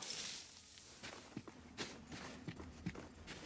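Footsteps crunch on loose, dusty ground.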